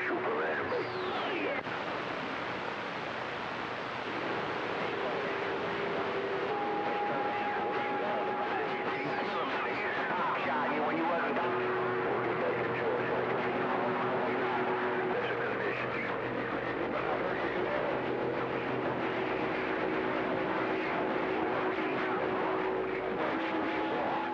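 Steady whistling tones come and go over a radio's hiss, with a few falling whistles.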